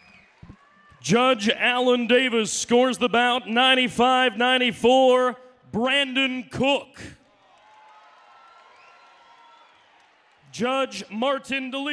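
A young man announces loudly and with animation through a microphone and loudspeakers in a large echoing hall.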